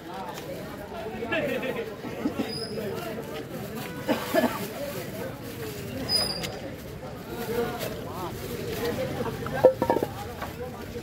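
A knife chops through fish with sharp knocks.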